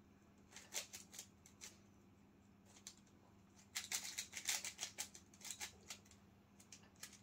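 A puzzle cube's plastic layers click and clack as they are turned quickly.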